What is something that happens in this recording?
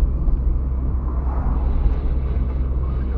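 A van passes by in the other direction.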